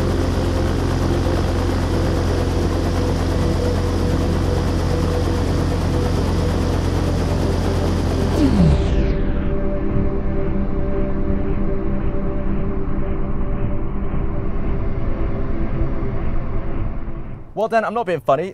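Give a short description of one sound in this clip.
Electric fans hum steadily.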